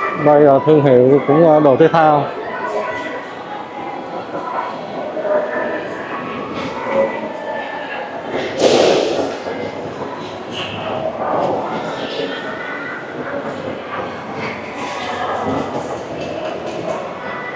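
Distant voices murmur in a large echoing hall.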